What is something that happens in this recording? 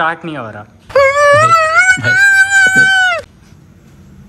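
A man wails loudly, crying.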